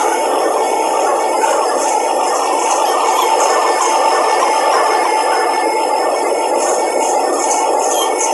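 A diesel train engine rumbles steadily as it rolls along.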